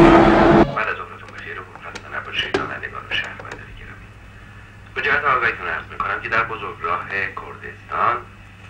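A man speaks calmly on a phone nearby.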